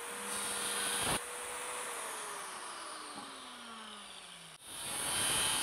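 An electric saw whirs, then winds down.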